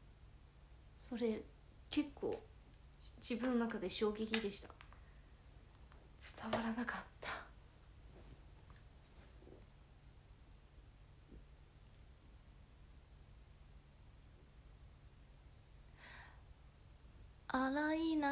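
A young woman talks casually and close by, in short bursts with pauses.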